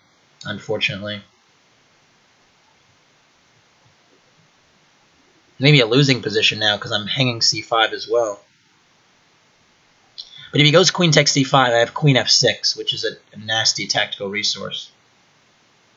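A young man talks casually into a nearby microphone, in short bursts.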